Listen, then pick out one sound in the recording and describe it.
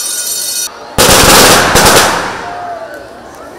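A firecracker bursts with a loud crackling blast.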